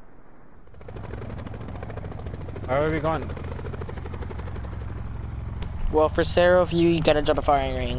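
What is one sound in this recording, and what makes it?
Helicopter rotors thump overhead.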